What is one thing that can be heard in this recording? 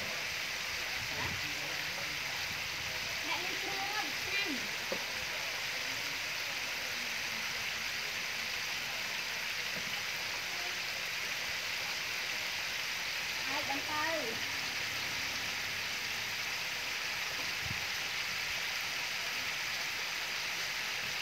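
Chicken legs sizzle and crackle in hot oil in a deep fryer.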